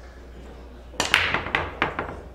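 A cue ball smashes into a rack of pool balls, scattering them with loud clacks.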